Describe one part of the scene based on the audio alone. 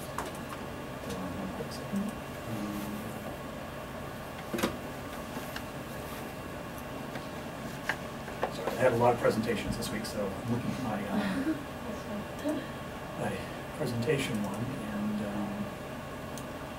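A middle-aged man speaks calmly and briefly nearby.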